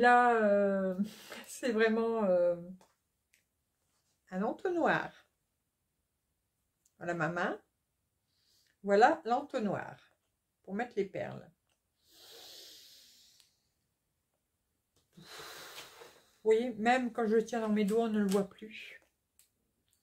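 A middle-aged woman speaks calmly and close by, in short phrases with pauses.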